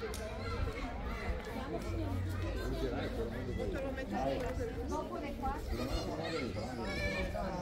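Elderly men and women chatter nearby in a crowd.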